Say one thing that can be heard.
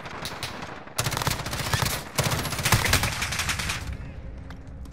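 Rapid rifle gunfire rattles in loud bursts.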